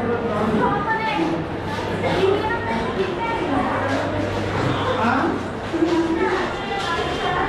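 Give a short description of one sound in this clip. Young men and women chat nearby, their voices echoing off stone walls.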